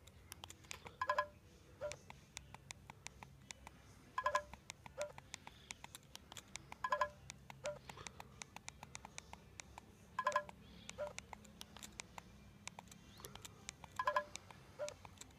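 A short electronic chime plays from a small phone speaker each time dice are rolled.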